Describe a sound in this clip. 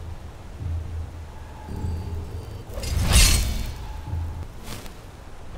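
A magic spell crackles and whooshes loudly.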